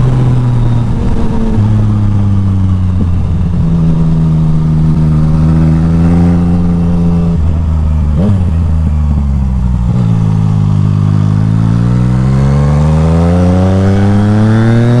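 A motorcycle engine hums steadily, dropping in pitch at gear changes and revving up again.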